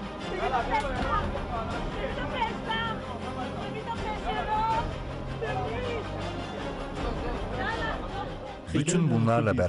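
Men shout and argue close by in a crowded scuffle.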